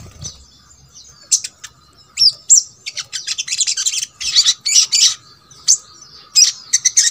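A small bird sings close by in quick, high chirps and trills.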